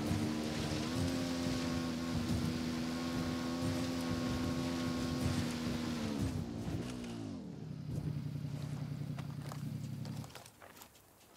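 A motorcycle engine drones steadily, then winds down to a low idle and stops.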